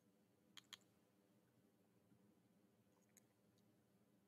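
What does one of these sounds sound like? A computer mouse clicks a few times nearby.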